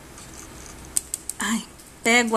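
Small glass beads click softly against each other.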